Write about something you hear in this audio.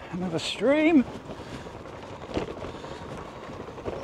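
Bicycle tyres rumble over wooden boards.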